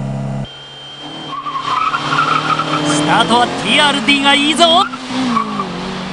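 Car engines roar as two cars drive past.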